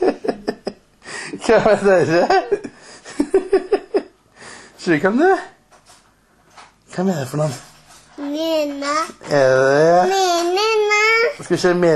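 A little girl laughs loudly close by.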